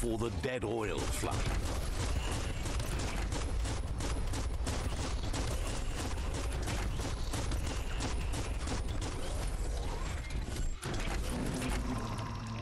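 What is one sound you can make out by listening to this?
A robot's heavy feet splash through rushing water.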